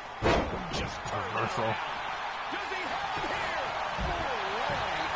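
Punches thud.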